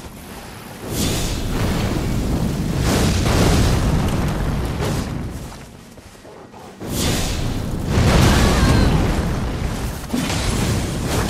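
Fiery explosions boom and roar.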